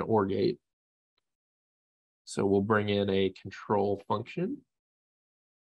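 A man speaks casually into a close microphone.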